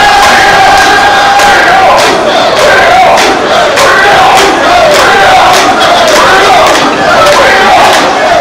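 A crowd murmurs and chatters along a busy street.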